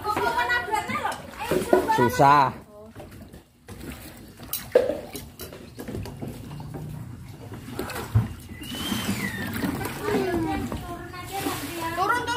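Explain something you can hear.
Shallow water sloshes around a small plastic boat.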